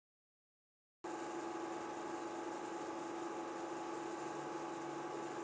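A film projector whirs and clicks steadily.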